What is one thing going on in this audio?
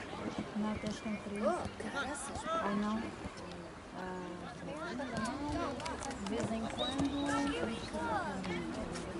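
Young players shout to each other across an open field.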